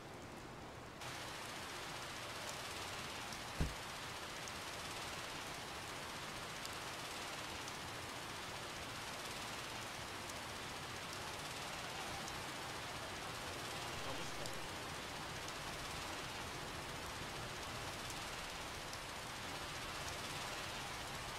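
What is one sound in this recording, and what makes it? Water hisses steadily from fire hoses.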